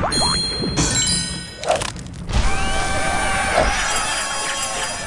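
Bright chimes and sparkling jingles from a game ring out.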